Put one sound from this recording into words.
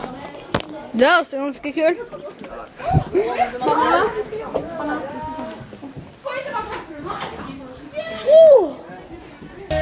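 A young girl laughs and squeals close by.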